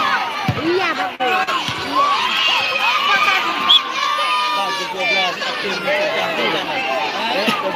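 A large crowd of spectators shouts and cheers loudly outdoors.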